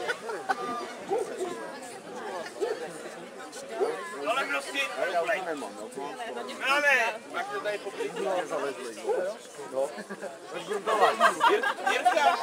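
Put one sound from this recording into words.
Children shout and call out excitedly.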